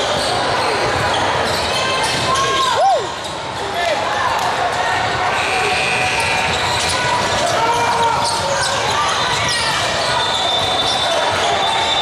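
A crowd of spectators chatters throughout.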